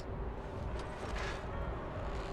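Glass cracks and shatters.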